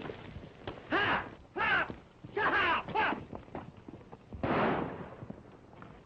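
A horse whinnies shrilly.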